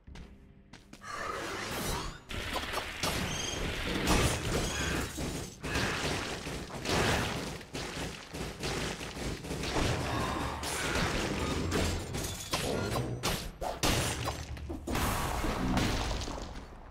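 Game sword slashes and magic blasts crackle rapidly in a fight.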